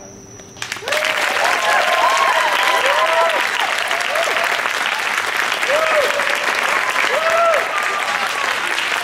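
Young women in a crowd whoop and shout excitedly.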